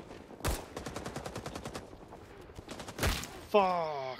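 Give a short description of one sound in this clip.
A pistol fires a rapid string of shots.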